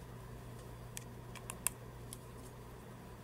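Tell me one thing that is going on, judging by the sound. A plastic makeup case clicks and rattles in someone's hands.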